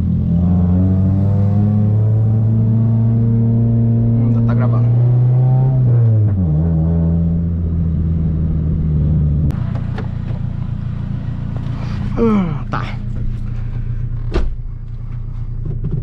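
Tyres rumble on a dirt road.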